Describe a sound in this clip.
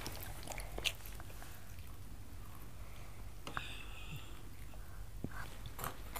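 Milk pours and splashes into a bowl.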